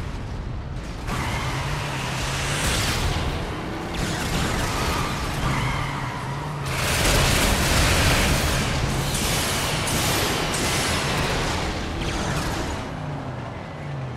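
A car engine roars and revs as it drives.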